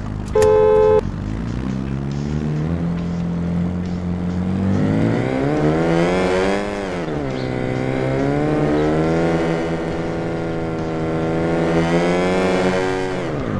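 A car engine revs up and down as the car accelerates and shifts gears.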